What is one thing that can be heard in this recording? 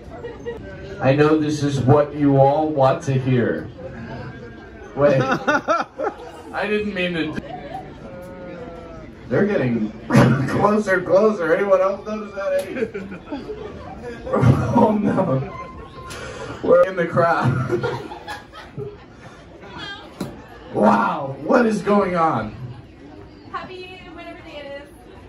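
A young man talks with animation into a microphone over a loudspeaker in an echoing room.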